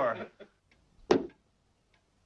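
A dart thuds sharply into a board.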